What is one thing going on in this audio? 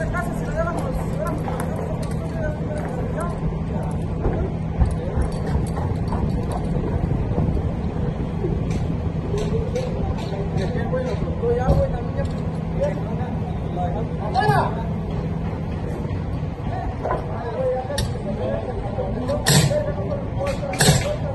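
Workers hammer nails into wooden wall framing outdoors.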